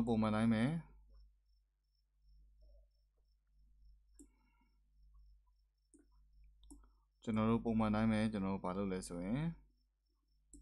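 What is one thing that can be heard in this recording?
A young man speaks calmly close to a microphone, in short bursts.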